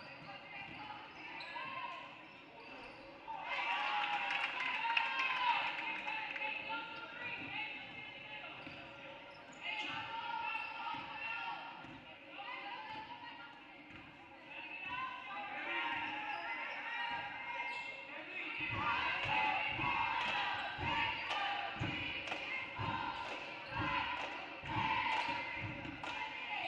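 A crowd talks and cheers in an echoing gym.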